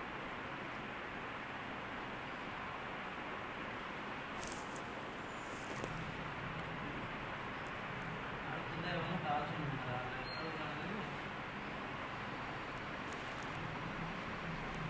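Wind blows steadily through tall grass outdoors.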